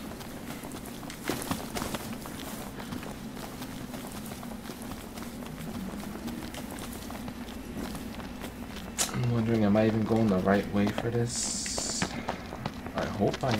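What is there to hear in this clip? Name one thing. Footsteps run quickly through grass and brush.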